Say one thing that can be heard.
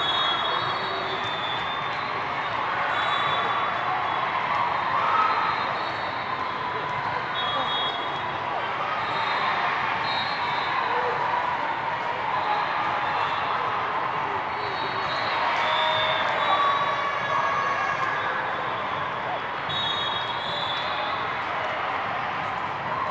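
A large crowd chatters steadily.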